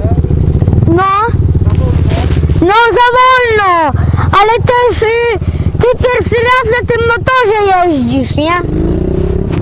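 Another dirt bike revs high and whines as it passes nearby.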